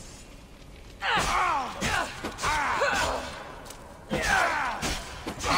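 A creature lets out shrill, wavering shrieks.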